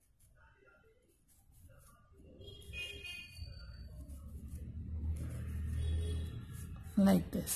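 A crochet hook rubs softly through yarn.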